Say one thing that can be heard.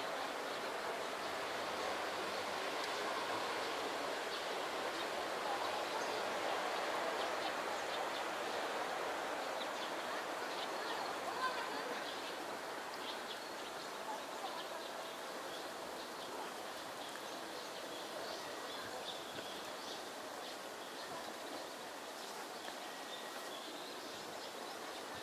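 A grebe chick peeps in short, high calls.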